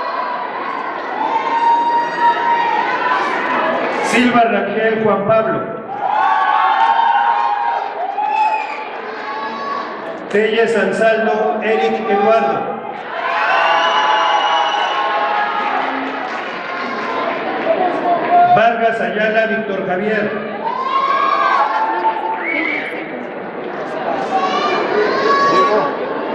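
A man speaks through a loudspeaker in a large echoing hall, announcing with animation.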